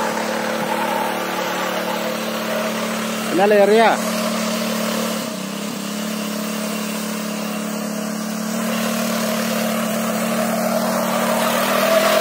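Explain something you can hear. A small engine runs steadily with a low hum nearby.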